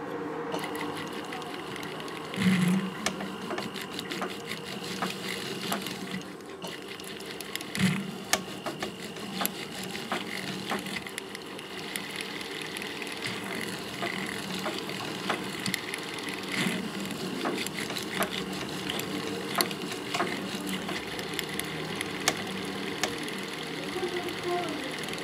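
A fine metal tool scrapes and ticks against metal up close.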